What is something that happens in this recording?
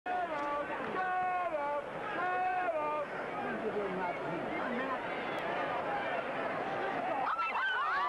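A large crowd roars and cheers in an open stadium.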